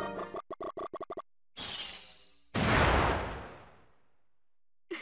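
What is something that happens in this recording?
Quick electronic chirps and a whooshing blast ring out.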